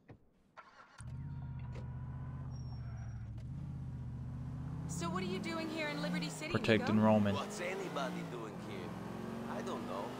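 A car engine idles and then revs as the car drives off.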